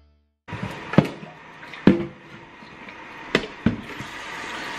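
A plastic water pitcher knocks against a counter.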